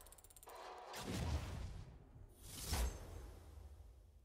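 A magical chime bursts out.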